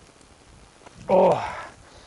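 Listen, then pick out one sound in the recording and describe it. Loose dirt thuds as it is tossed from a shovel.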